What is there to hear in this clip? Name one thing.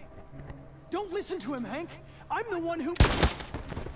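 A young man speaks urgently, cut off mid-sentence.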